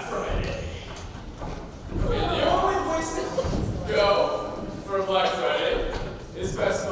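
Footsteps thump on a wooden stage floor.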